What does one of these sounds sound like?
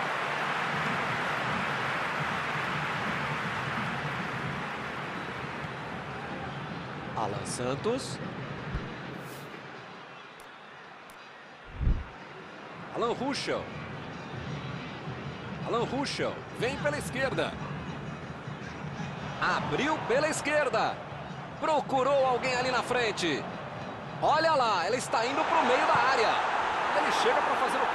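A stadium crowd roars and murmurs.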